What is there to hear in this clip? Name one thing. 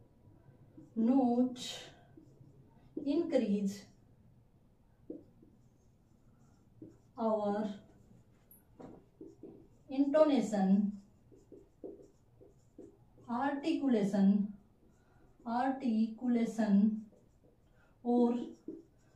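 A woman speaks calmly and clearly nearby, explaining in short phrases.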